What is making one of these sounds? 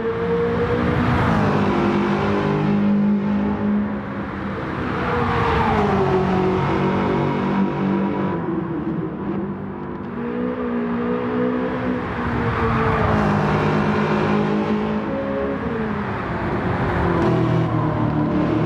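A car roars past close by.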